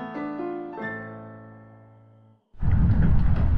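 A woman plays slow piano notes.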